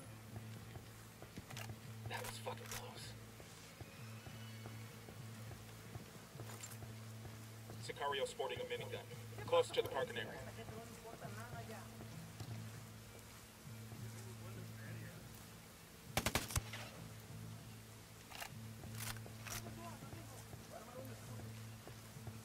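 Footsteps tread steadily on stone paving.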